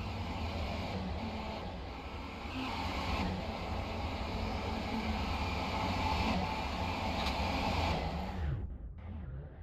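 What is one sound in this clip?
A train rumbles along the tracks as it approaches.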